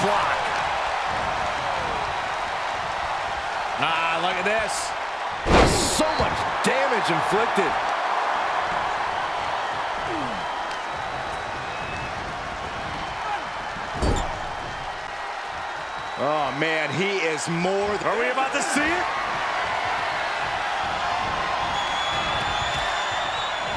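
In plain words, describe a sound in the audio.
A large crowd cheers and roars steadily.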